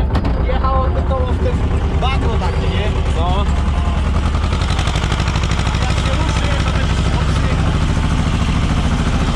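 A tractor engine rumbles steadily up close.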